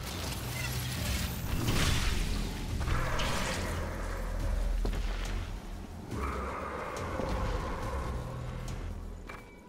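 Blades slash and clash in a fight.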